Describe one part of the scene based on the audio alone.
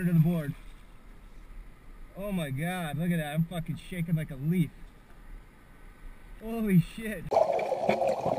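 A paddle dips and splashes in calm water.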